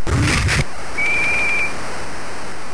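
A referee's whistle blows a short shrill blast.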